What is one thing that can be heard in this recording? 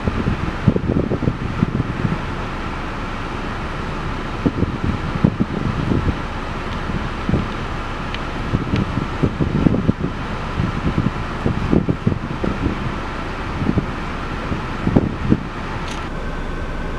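Wind gusts rumble outdoors.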